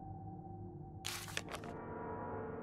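A sheet of paper rustles as a page turns.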